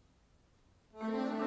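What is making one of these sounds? A school wind band starts to play in a large hall.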